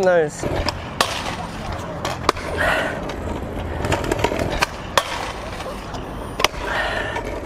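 A scooter lands hard with a sharp clack.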